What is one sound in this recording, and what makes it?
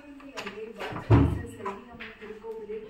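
A door latch clicks and rattles as a door is pushed open.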